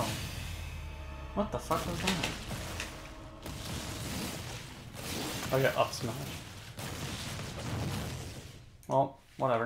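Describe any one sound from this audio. Punches and blasts from a video game fight thud and crash.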